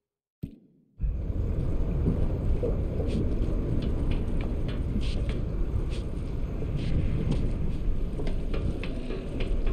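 Footsteps clang on a metal grating walkway.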